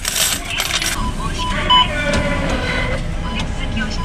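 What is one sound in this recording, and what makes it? A machine beeps as a button is pressed.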